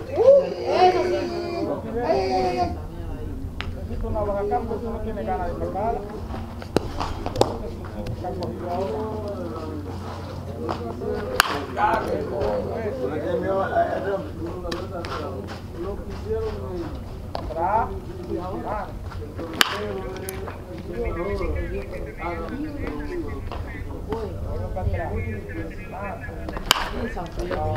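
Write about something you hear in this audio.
A baseball bat cracks against a pitched ball.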